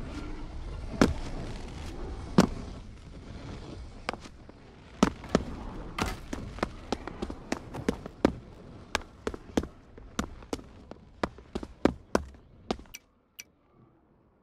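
Sharp thuds and clicks sound in quick succession, then stop.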